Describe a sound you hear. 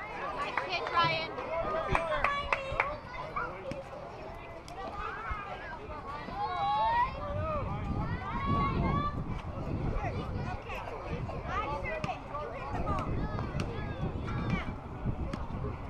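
Children shout and cheer outdoors, some distance away.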